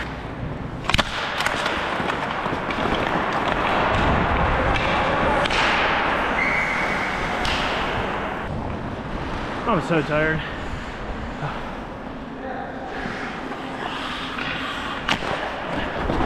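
Hockey sticks clack sharply against the puck and the ice.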